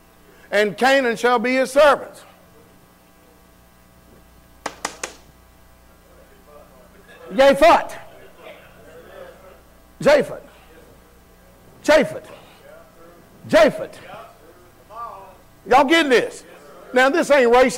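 A man preaches loudly and with passion through a microphone in an echoing hall.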